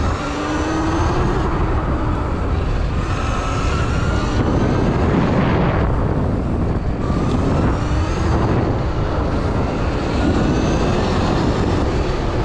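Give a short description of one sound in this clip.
Tyres roll fast over a gravel track.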